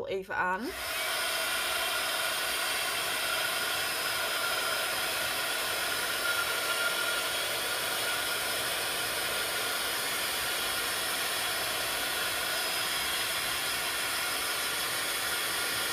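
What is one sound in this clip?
A heat tool's fan whirs steadily and loudly.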